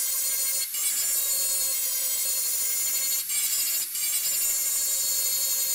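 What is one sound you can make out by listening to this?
An angle grinder whines steadily as it grinds metal.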